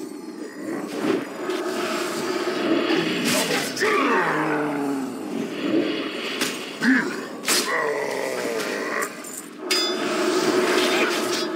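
Weapons strike and spells burst in a fierce fight.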